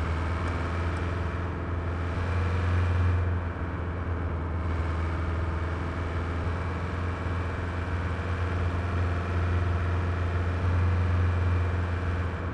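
A car engine hums steadily with a low drone.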